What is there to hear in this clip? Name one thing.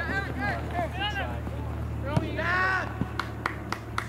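A soccer ball is kicked with a dull thump outdoors.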